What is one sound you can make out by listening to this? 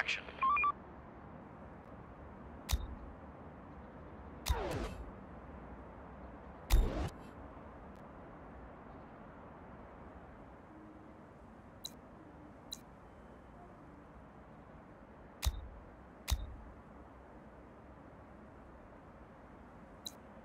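Interface clicks and soft whooshes sound as menus open and close.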